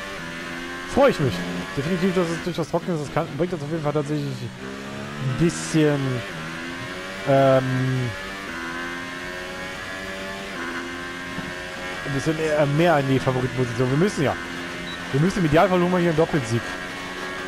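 A racing car engine pops and crackles when the driver shifts down.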